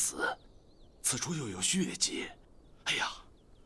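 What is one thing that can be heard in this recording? A second elderly man speaks in a low, urgent voice.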